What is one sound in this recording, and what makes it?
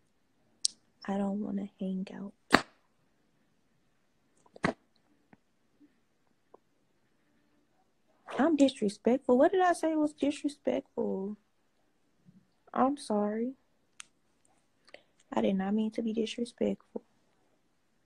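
A young woman talks calmly in short bursts, close to a phone microphone.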